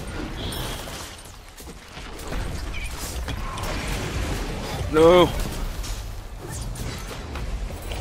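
Icy magic blasts crackle and whoosh.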